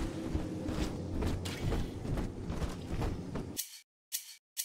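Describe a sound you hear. Heavy footsteps clank on metal stairs.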